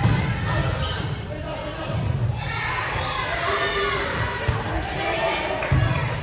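A volleyball thumps off a player's hands in a large echoing gym.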